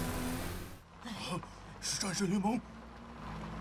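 A man speaks in a deep, cartoonish voice.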